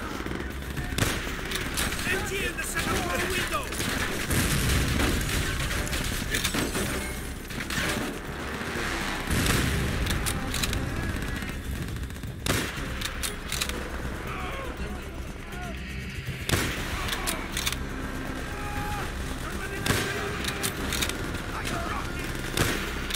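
Rifle shots crack loudly now and then, with short echoes.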